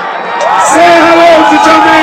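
A large outdoor crowd cheers.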